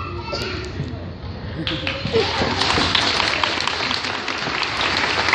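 A choir of young children sings together in a large echoing hall.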